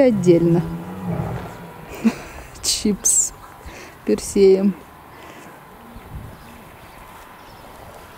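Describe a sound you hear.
A lion pads softly across dry ground.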